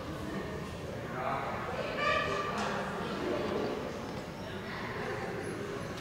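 A man talks calmly nearby in a large echoing hall.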